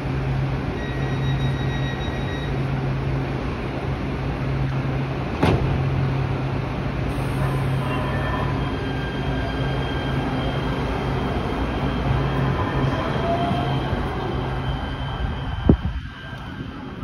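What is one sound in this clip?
A train idles with a steady low hum.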